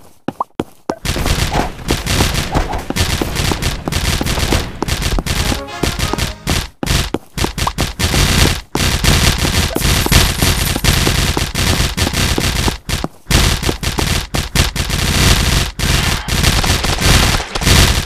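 Video game battle sounds clash and pop rapidly.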